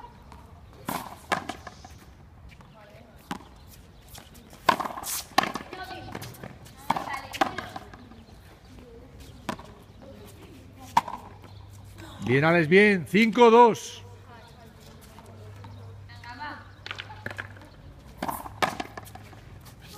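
A ball smacks off rackets and bounces hard off a wall.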